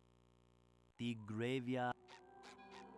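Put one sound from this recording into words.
Electronic game music plays with a warbling, wobbling tune.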